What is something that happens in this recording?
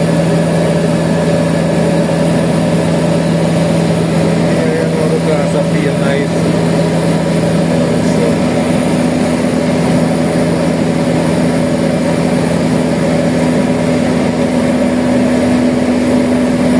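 Jet engines drone steadily inside an airliner cabin, their hum shifting in pitch partway through.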